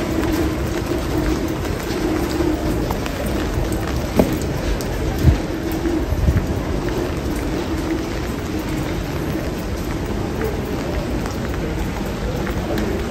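Light rain patters steadily on a wet street outdoors.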